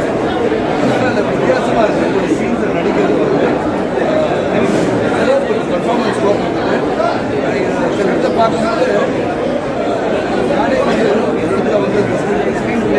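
A middle-aged man speaks with animation into microphones close by.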